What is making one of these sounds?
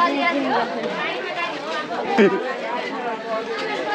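Young boys talk loudly close by.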